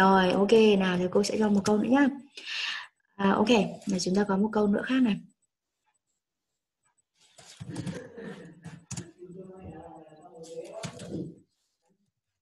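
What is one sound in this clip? A woman speaks calmly and clearly over an online call.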